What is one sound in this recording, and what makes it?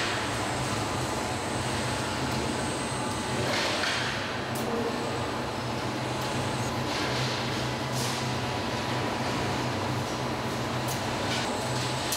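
Factory machinery hums steadily in a large hall.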